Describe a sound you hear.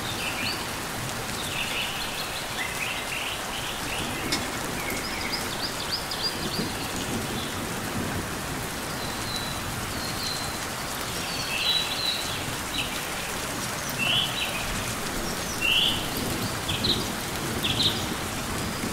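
Birds chirp in short, high bursts.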